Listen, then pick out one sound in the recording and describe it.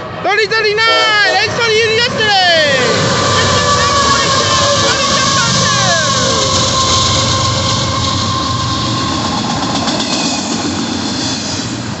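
A freight train rumbles and clatters loudly past close by.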